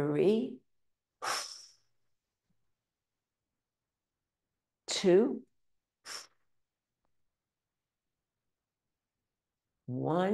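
An elderly woman speaks calmly in short phrases into a microphone.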